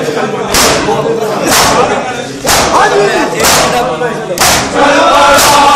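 Hands slap bare chests hard in a steady, slow rhythm, about once a second.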